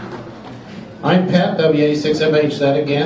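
A middle-aged man speaks through a microphone into a room's loudspeakers.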